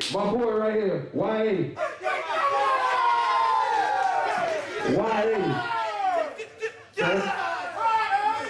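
A man raps or sings loudly into a microphone through loudspeakers in an echoing room.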